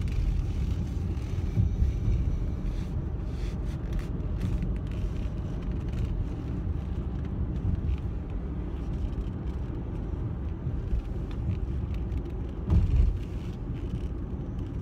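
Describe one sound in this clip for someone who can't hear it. A car hums and rumbles steadily as it drives.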